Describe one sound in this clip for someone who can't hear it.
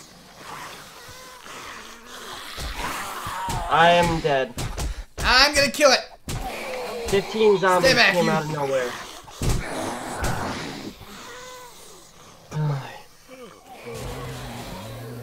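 A young man talks excitedly and shouts close to a microphone.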